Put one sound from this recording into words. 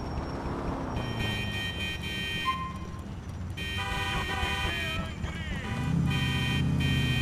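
A police siren wails loudly.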